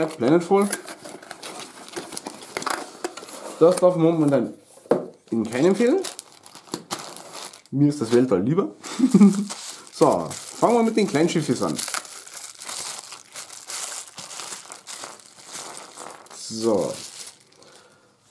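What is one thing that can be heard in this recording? Plastic wrapping crinkles and rustles in hands.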